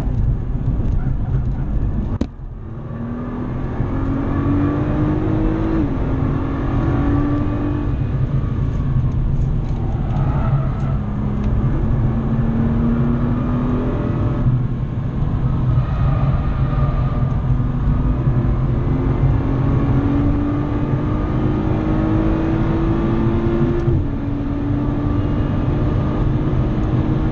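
A sports car's engine roars loudly from inside the cabin, rising in pitch as it revs through the gears.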